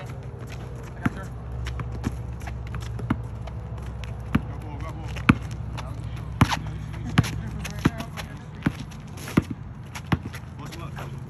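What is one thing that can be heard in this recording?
A basketball is dribbled on an outdoor asphalt court.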